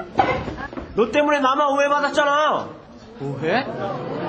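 A young man exclaims in a high, drawn-out voice.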